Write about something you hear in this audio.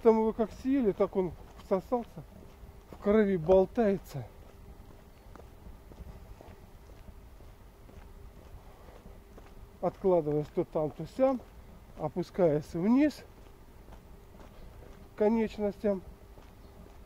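An elderly man speaks calmly close to the microphone, in pauses.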